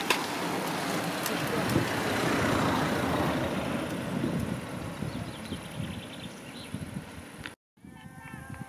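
A van drives past, growing loud and then fading.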